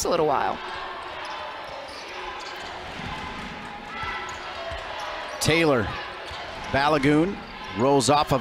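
A crowd murmurs in a large echoing arena.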